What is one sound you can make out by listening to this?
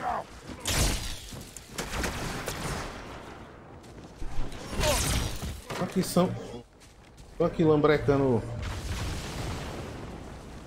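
An energy blade swishes and crackles through the air.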